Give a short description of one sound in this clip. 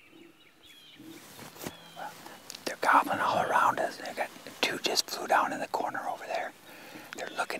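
A man speaks calmly and quietly, close by.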